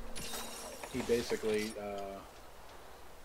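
A short electronic chime plays.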